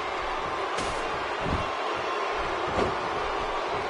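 A wrestler's body thuds onto the ring mat.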